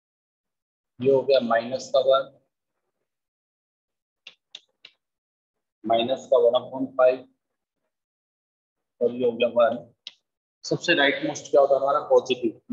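A man explains calmly and clearly, close by.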